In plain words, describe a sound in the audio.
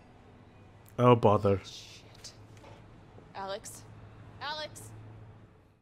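A young woman exclaims in surprise, close by.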